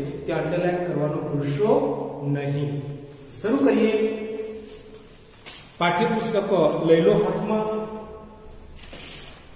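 A middle-aged man speaks calmly and clearly, close to a microphone.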